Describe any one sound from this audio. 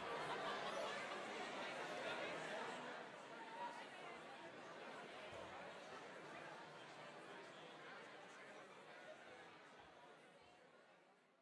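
A crowd of men and women chat and murmur in a large echoing room.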